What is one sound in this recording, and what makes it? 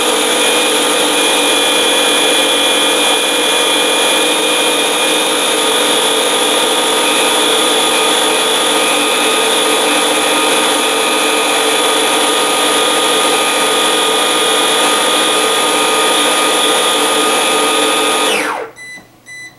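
A food processor motor whirs loudly and steadily as it blends.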